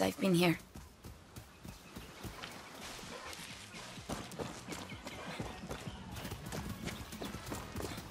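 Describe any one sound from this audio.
Footsteps crunch through undergrowth.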